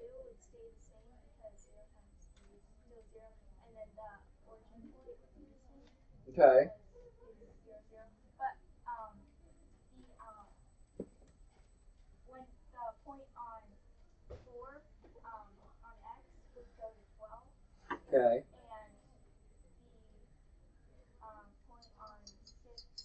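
Children talk and chatter in a room.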